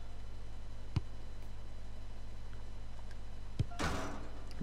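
A football is kicked with a sharp thump.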